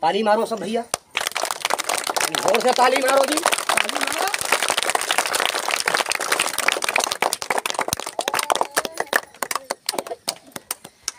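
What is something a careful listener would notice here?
A group of children clap their hands rapidly.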